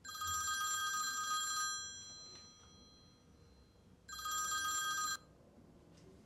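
A phone rings with a chiming tone.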